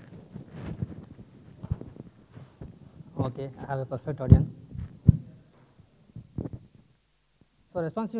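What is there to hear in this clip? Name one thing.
A young man speaks through a microphone, with pauses.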